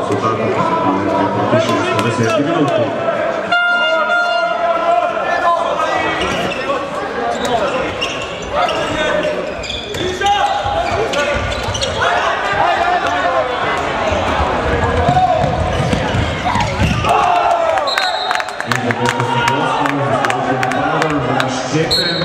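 A ball bounces repeatedly on a hard floor.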